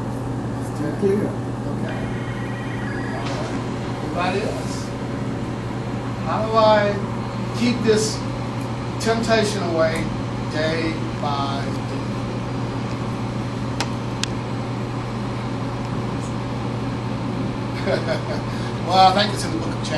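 A man speaks in slow, measured bursts, heard from across a room.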